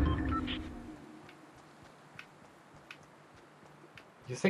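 Footsteps run lightly on hard ground.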